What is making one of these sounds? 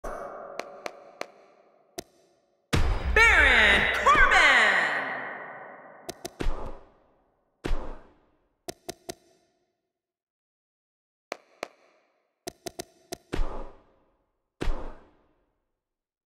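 Short game menu clicks and swooshes sound as options change.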